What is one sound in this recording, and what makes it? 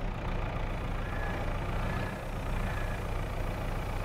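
A hydraulic arm whines as it lifts and lowers.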